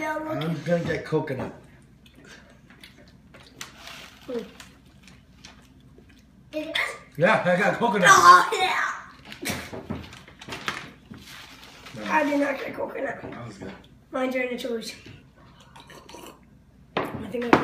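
A boy talks excitedly and laughs close by.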